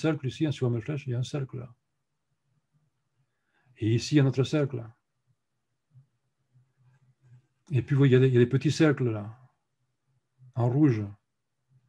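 A man speaks calmly in short phrases over a microphone, as on an online call.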